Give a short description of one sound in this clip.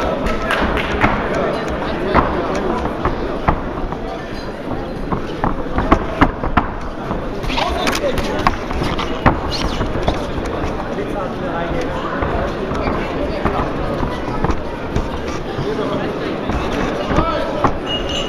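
Punches thud against boxing gloves.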